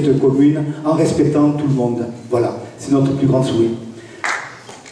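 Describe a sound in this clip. An elderly man speaks with animation into a microphone over loudspeakers in a large hall.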